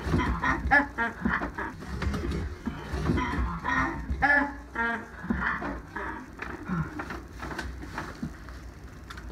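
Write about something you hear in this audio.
A boy speaks with animation close by.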